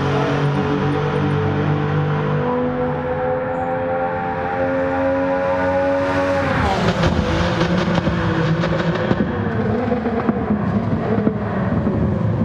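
A racing car engine whines at high revs, then drops in pitch as the car roars past.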